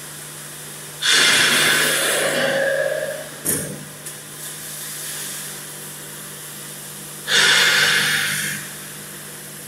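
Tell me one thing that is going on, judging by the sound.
Compressed air hisses in short loud bursts.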